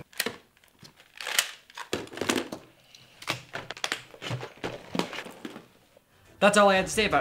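Plastic toy pieces clatter and click on a table.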